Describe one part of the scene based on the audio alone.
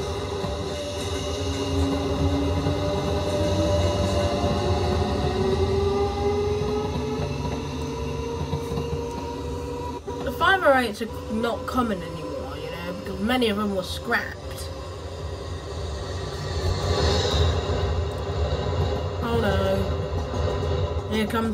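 A train engine hums and rumbles as the train rolls past.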